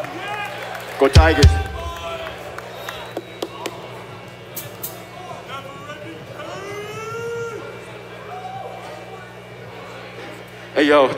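A man speaks through a microphone over loudspeakers.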